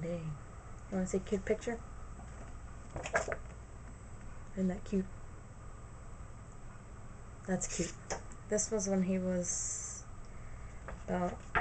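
A young woman speaks softly and close by, in short phrases with pauses.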